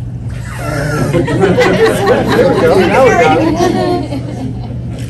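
People laugh and cheer excitedly nearby.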